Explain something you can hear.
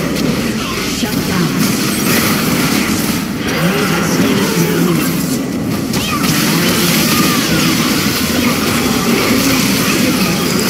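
Spell blasts and weapon hits clash in quick bursts.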